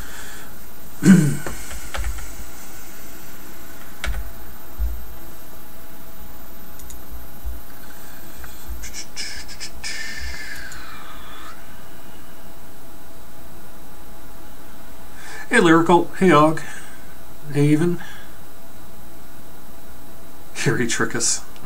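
A man speaks casually into a nearby microphone.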